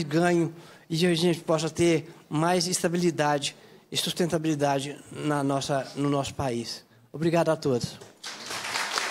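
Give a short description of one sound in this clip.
A man speaks with animation into a microphone.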